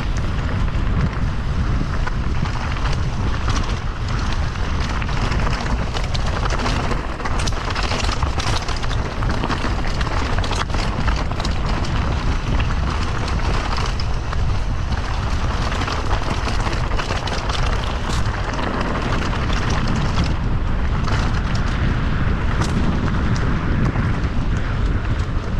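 Wind rumbles loudly past close by.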